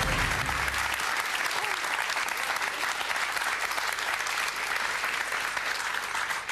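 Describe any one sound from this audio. A studio audience applauds and cheers loudly in a large hall.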